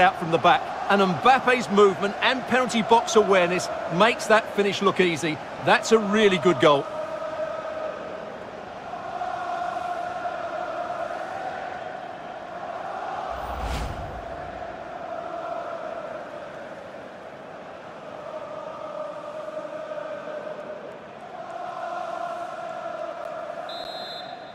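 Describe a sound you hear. A large stadium crowd roars and cheers in waves.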